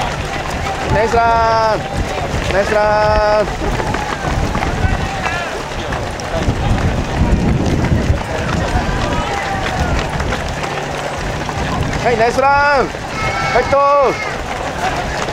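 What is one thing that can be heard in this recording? A woman nearby shouts encouragement loudly.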